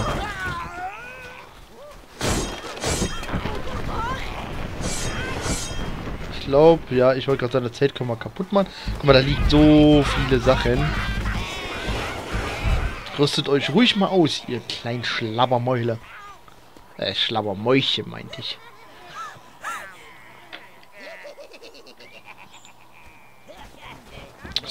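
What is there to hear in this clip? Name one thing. Swords and blades clash and strike in a rough melee.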